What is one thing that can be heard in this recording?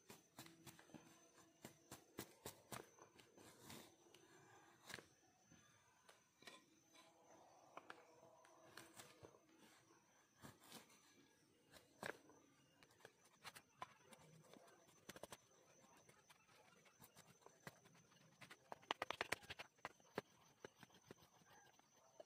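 Wooden sticks knock and scrape together close by.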